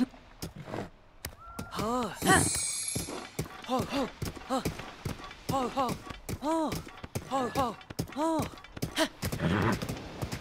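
A horse gallops, its hooves thudding on sand.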